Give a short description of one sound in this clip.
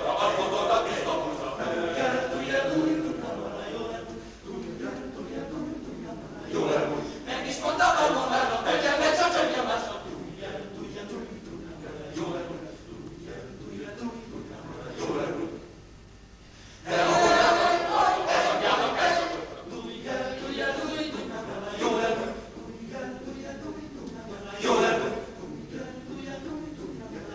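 A large men's choir sings together in a reverberant hall, swelling and softening.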